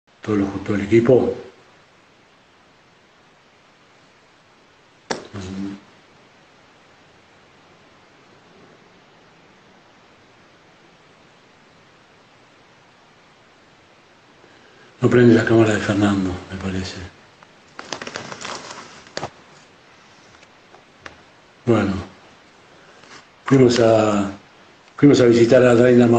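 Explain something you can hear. An elderly man speaks calmly into a close phone microphone, in short bursts with long pauses.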